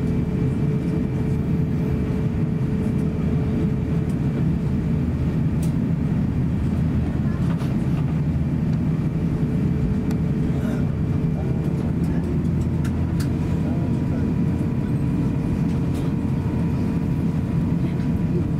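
A jet airliner's engines rumble and hum steadily from inside the cabin.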